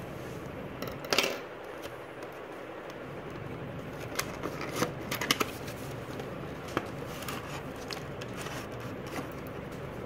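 Cardboard packaging scrapes and taps.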